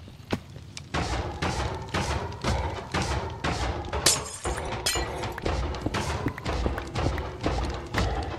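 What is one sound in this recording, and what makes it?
A pickaxe chips rapidly at a block of stone, cracking it apart.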